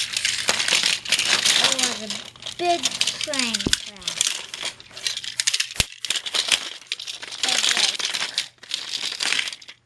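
Plastic toy trains clatter and crash together.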